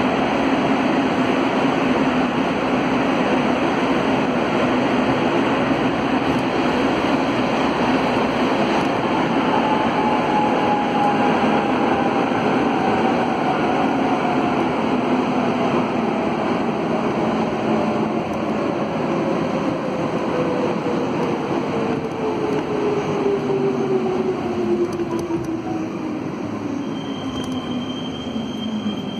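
A subway train rumbles and roars loudly through a tunnel.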